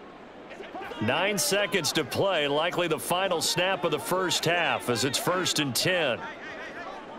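A stadium crowd roars loudly.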